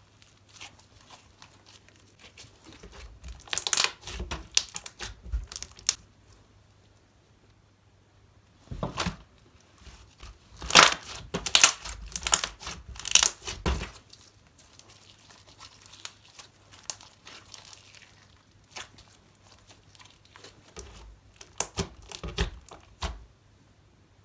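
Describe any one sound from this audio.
Slime squelches and pops as hands squeeze and press it.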